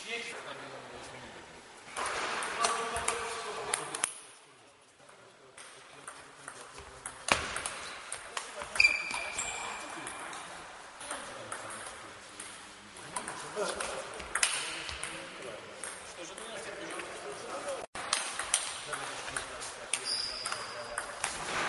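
A ping-pong ball clicks sharply back and forth in a large echoing hall.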